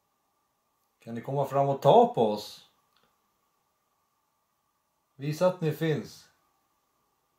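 A man speaks quietly up close, in short phrases.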